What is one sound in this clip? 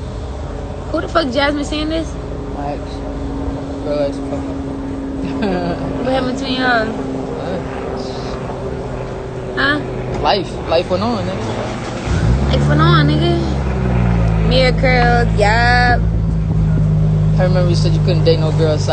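A young woman talks casually close to a phone microphone.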